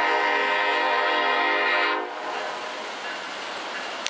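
A diesel locomotive rumbles past.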